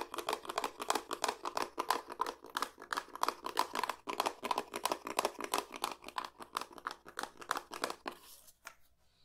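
Fingers rapidly tap and scratch on a cardboard tube.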